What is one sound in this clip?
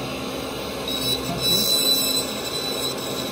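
A dental lab handpiece grinds a plaster model.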